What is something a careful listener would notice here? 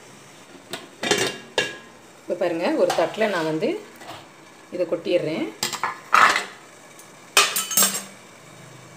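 A metal plate clinks and scrapes against a steel pot.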